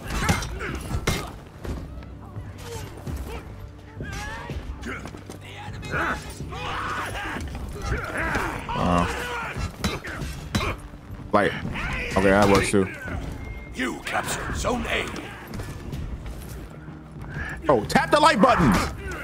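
Swords clash and clang in a video game battle.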